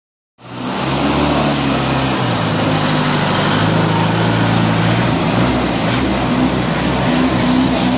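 A race car engine idles with a loud, rough rumble close by.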